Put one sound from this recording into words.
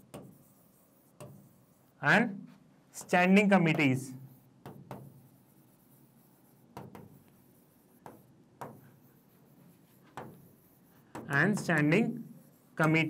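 A marker squeaks and taps on a board.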